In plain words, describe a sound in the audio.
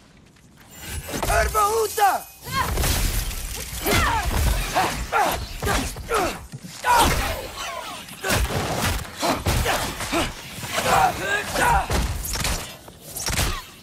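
Blades swish and strike with sharp, heavy impacts.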